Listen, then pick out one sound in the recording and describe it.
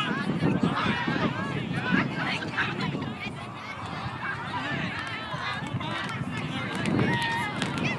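Young boys shout and chatter nearby outdoors.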